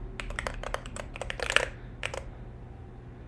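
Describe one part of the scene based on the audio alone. Computer keys click rapidly.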